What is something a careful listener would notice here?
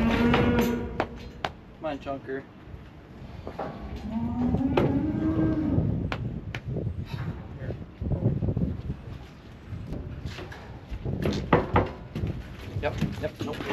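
Metal gates of a livestock chute clang and rattle.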